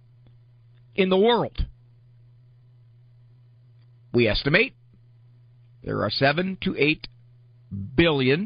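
A man speaks with animation into a microphone, in short bursts.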